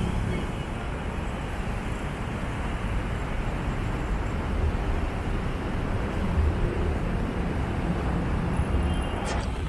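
Traffic rumbles steadily along a busy road below.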